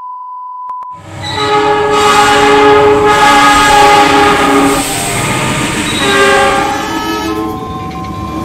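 A diesel locomotive blares its horn loudly.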